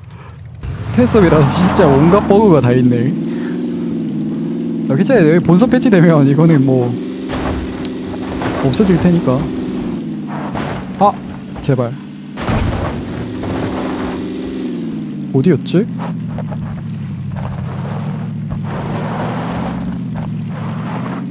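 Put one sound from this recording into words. A car engine hums steadily as the car drives over rough ground.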